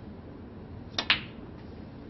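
A snooker cue strikes the cue ball with a sharp tap.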